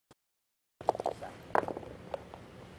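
Dice rattle in a cup and clatter onto a board.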